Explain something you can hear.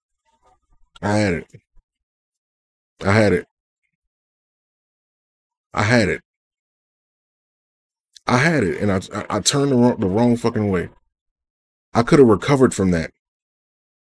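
A man speaks with animation in short bursts, close to a microphone.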